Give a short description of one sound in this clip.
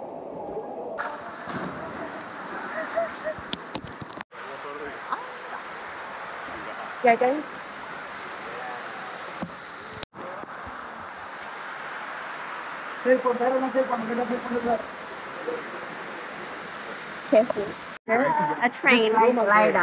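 Flowing water rushes steadily.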